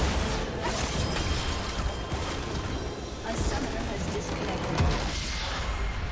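Spell effects and blasts crash during a video game battle.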